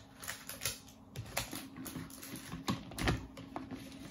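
Plastic container lids rattle and clack as a hand handles them.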